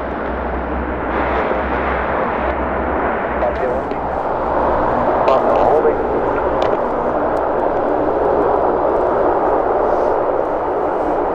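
Propeller engines of a large aircraft roar steadily at a distance, outdoors.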